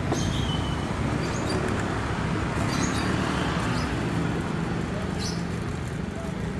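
Motorbike engines hum as the bikes ride past close by.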